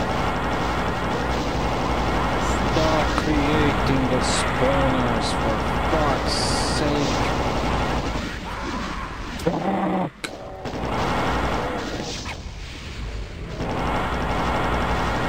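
Monsters growl and screech.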